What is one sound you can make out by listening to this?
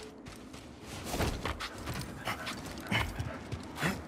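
A body thuds as it lands from a jump onto stone.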